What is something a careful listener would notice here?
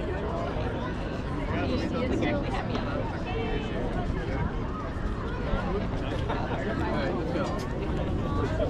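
A crowd of people chatter at a distance outdoors.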